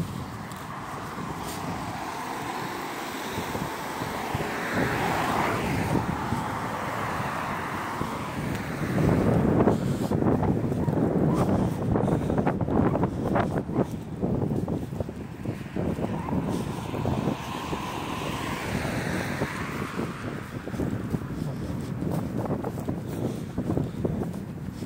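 A car drives past on a wet road, tyres hissing.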